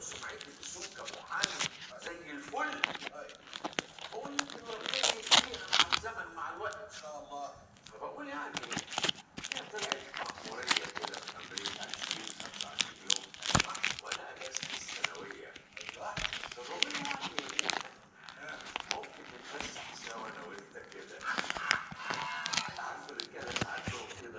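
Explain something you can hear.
Stiff paper crinkles and rustles close by.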